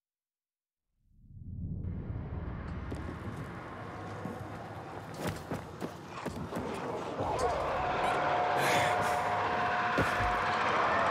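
Low rumbling and clattering game sounds play, with sharp knocks now and then.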